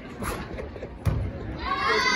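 A gymnast lands with a heavy thud on a mat.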